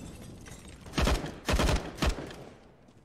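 A rifle fires several loud shots in quick bursts.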